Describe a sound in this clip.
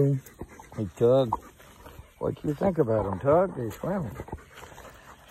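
A dog whines in high, wavering cries close by.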